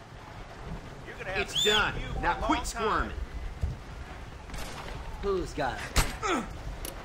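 A man speaks gruffly nearby.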